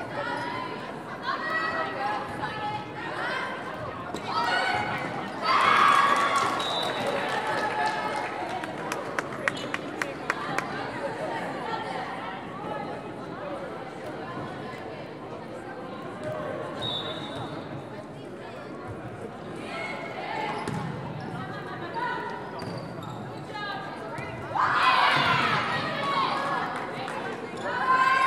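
Girls' voices shout and call out across a large echoing gym.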